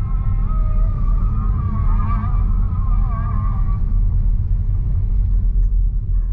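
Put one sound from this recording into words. A car drives slowly along a road, its low engine and tyre rumble heard from inside the car.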